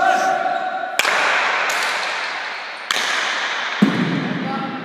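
A hard ball smacks against a wall and echoes through a large hall.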